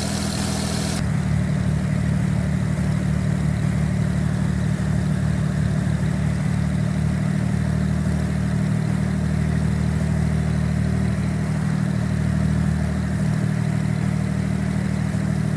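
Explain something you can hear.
A propeller plane's engine hums low and muffled from inside the cabin.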